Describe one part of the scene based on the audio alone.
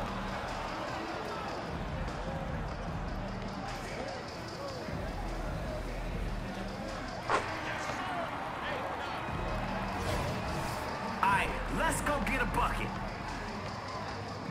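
A crowd murmurs and cheers steadily.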